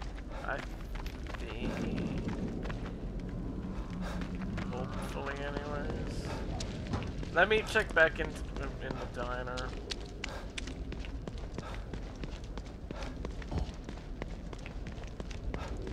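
Footsteps crunch quickly through grass and over pavement.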